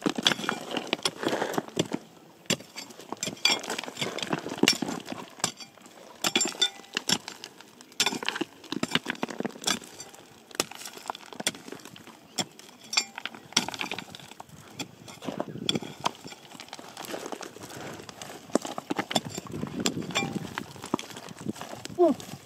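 A steel digging bar chips and scrapes into stony ground.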